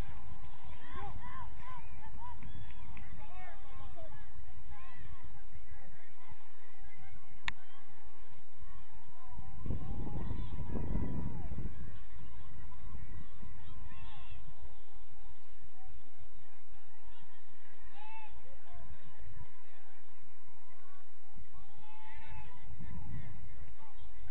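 Players call out to each other across an open field, some distance away.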